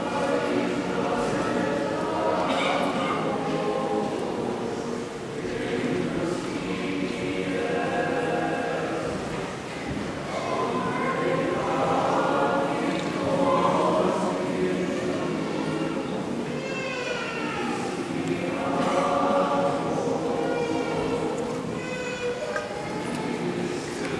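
A congregation sings together, echoing through a large reverberant hall.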